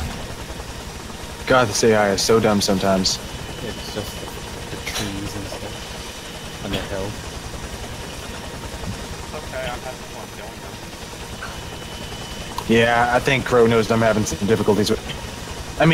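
A helicopter's rotor thuds steadily and close.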